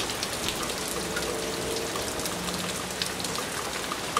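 Water gushes from a hose onto wet pavement.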